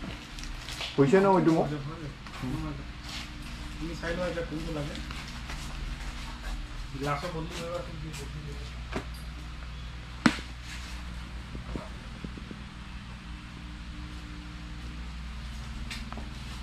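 Plastic helmets knock and rattle as they are handled.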